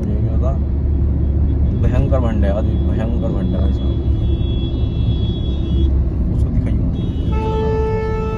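A car engine and tyres rumble steadily on a paved road, heard from inside the car.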